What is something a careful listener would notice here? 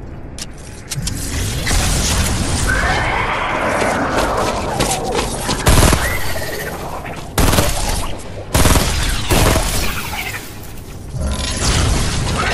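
Laser beams crackle and zap.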